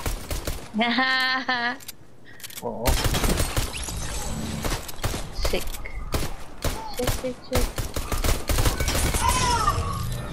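Pistol shots crack in quick bursts.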